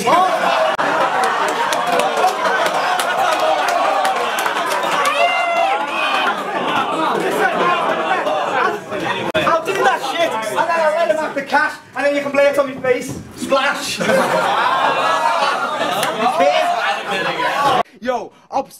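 A crowd of young men cheers, laughs and shouts in an echoing room.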